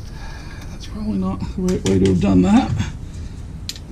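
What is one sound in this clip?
A middle-aged man talks calmly close by.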